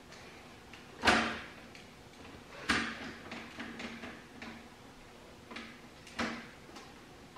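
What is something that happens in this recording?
Hands click and knock on plastic parts.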